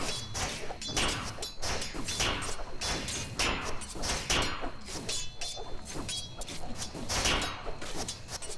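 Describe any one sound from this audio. Fantasy battle sound effects crackle and whoosh in rapid bursts.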